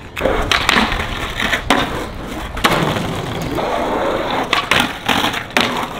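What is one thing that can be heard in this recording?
A skateboard grinds along a concrete ledge.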